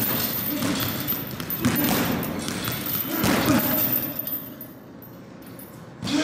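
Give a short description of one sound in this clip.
Gloved fists thud against a heavy bag.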